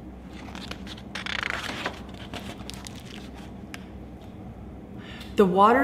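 A woman reads aloud expressively, close by.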